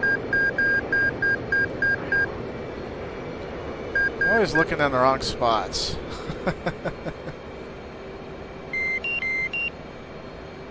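A cockpit warning tone beeps rapidly and repeatedly.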